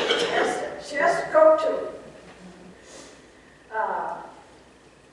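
An elderly woman reads aloud into a microphone.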